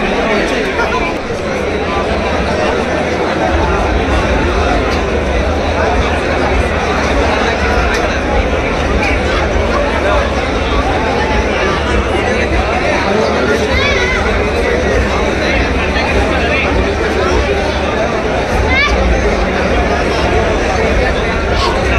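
A large crowd of young men chatters and shouts loudly in an echoing hall.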